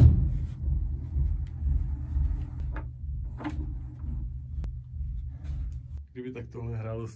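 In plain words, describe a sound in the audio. A low hum drones steadily.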